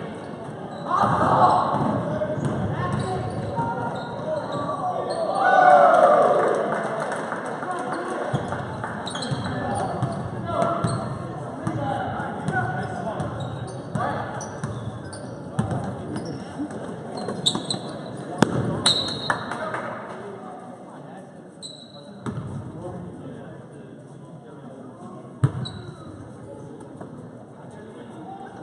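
A crowd of spectators cheers and calls out in a large echoing gym.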